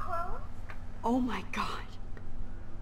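A young woman speaks softly and with surprise.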